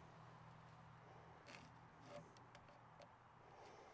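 A pencil scratches softly across wood.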